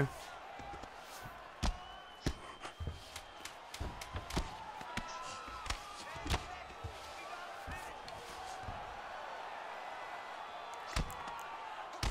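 Punches land with dull thuds.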